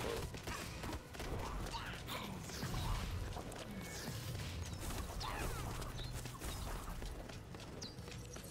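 Video game gunfire and magic blasts crackle and burst rapidly.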